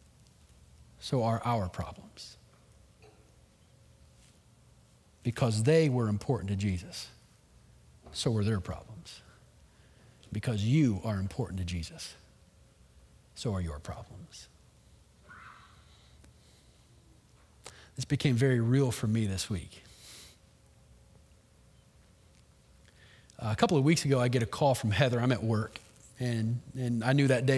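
A man speaks calmly with long pauses through a microphone.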